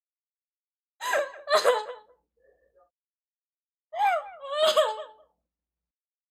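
A young woman laughs and squeals with delight close to a microphone.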